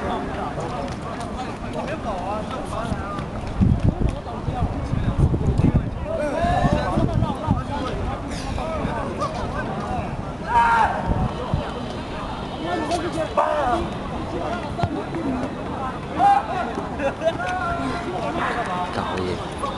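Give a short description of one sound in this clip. A crowd of young people chatters nearby outdoors.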